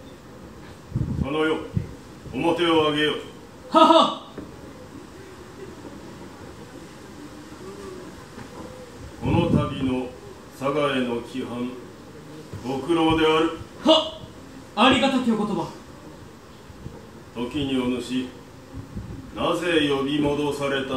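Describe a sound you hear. A man speaks nearby in slow, formal, drawn-out phrases.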